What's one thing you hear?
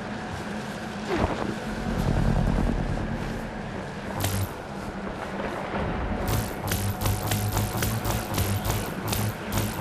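Footsteps crunch through snow at a run.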